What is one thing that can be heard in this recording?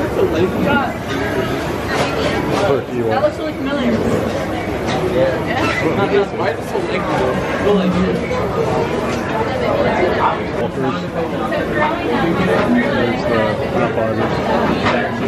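A crowd of people chatter all around in a busy, echoing room.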